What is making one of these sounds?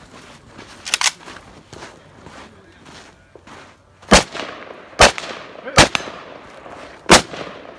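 A rifle fires single sharp shots outdoors, ringing out.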